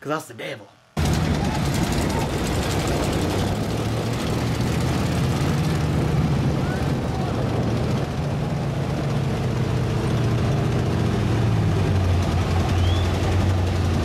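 Truck engines rumble and roar as trucks pull through mud.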